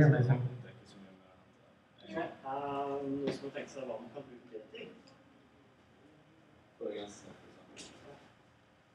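A young man speaks to a room, heard from a distance with a slight echo.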